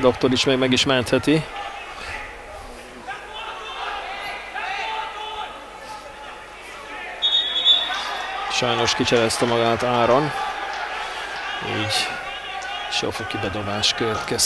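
A football is kicked with sharp thuds on an open pitch.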